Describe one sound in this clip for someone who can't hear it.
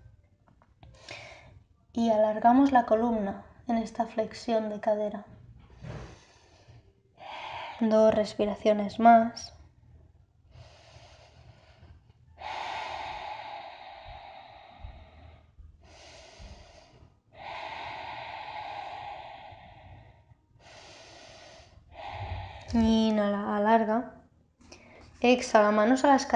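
A woman speaks calmly and slowly nearby, guiding in a soothing voice.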